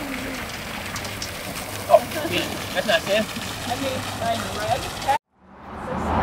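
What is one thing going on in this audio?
Water splashes steadily from a fountain.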